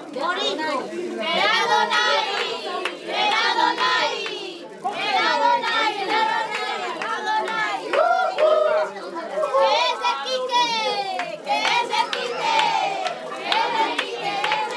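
Several people clap their hands.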